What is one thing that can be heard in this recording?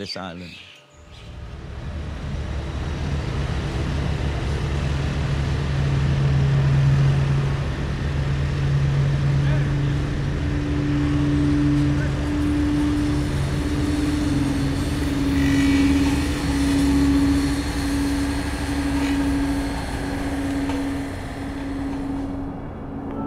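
A road roller's engine rumbles steadily.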